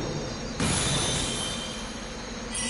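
Magic sparkles chime brightly.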